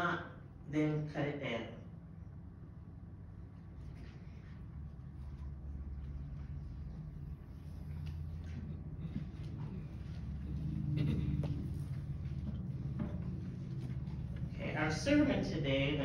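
A woman speaks through a microphone and loudspeakers in an echoing hall.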